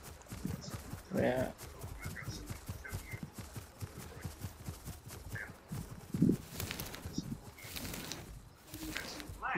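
Quick light footsteps patter through grass.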